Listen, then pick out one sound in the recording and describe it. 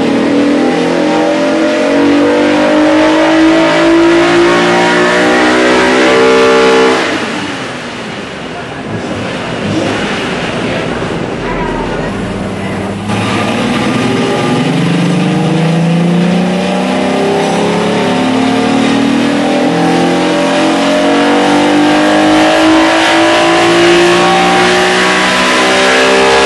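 A car engine roars loudly, climbing in pitch as it revs hard, then drops back and climbs again.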